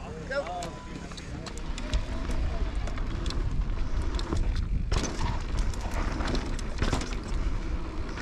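Bike tyres crunch and rumble over a dirt trail.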